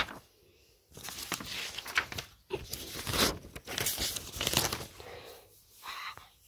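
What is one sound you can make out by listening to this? Paper rustles as a hand handles it.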